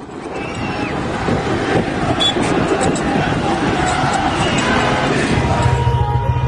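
A large crowd shouts and roars in the distance.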